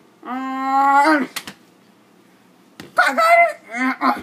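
A plastic bottle whacks against something soft.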